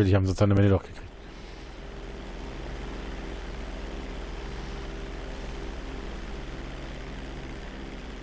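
A twin-engine propeller plane drones in flight.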